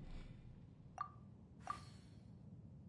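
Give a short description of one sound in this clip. A short electronic chime sounds twice.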